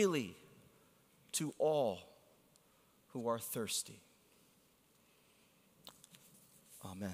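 A man speaks with emphasis through a microphone, with long pauses.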